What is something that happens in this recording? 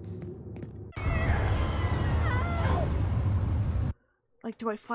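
A loud burst of smoke whooshes and roars.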